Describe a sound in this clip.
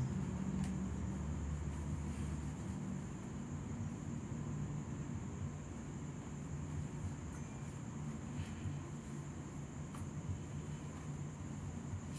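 An acoustic guitar is strummed softly close by.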